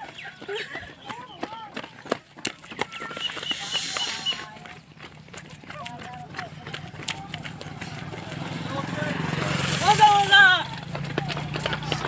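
Young men shout and cheer while running.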